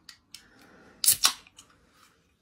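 A can snaps open with a hiss.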